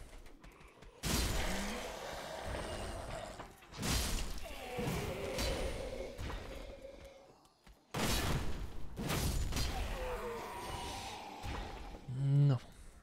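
Heavy blades swing and strike with loud whooshes and thuds.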